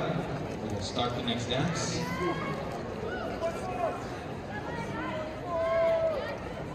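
A crowd of spectators chatters in a large echoing hall.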